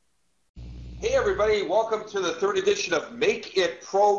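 A middle-aged man talks calmly over an online call.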